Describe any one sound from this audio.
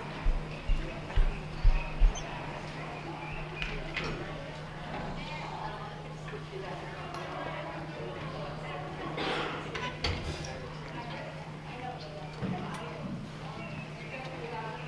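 A school band plays music in a large hall.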